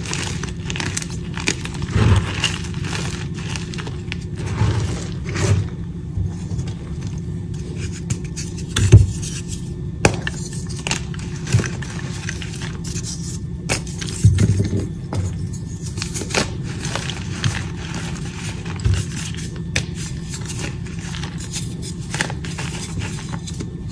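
Hands crumble soft chalky blocks with dry crunching and crackling.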